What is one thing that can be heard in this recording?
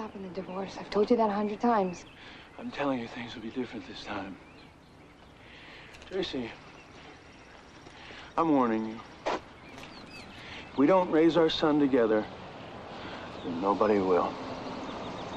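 A man speaks calmly and intensely, close by.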